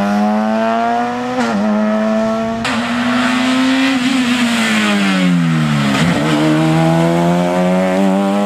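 A rally car engine roars loudly, revving up and down through gear changes as it speeds past.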